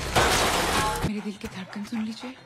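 A young woman talks on a phone.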